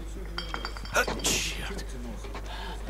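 A man mutters irritably to himself.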